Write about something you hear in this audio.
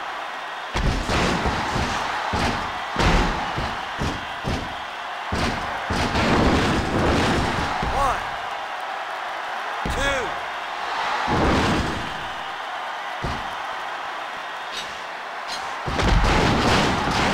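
Thuds of bodies slamming onto a wrestling mat ring out again and again.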